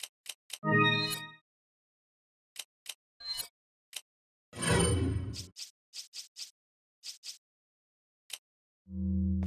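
Short electronic menu blips click one after another.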